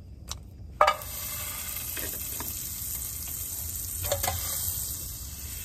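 Butter sizzles softly in a hot metal pan.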